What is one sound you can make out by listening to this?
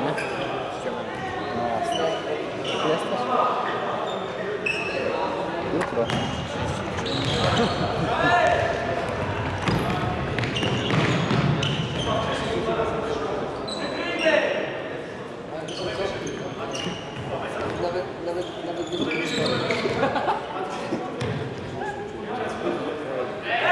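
Young men shout across an echoing hall.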